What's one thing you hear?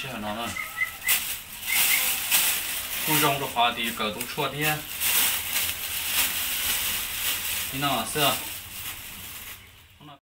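A plastic bag rustles and crinkles in a man's hands.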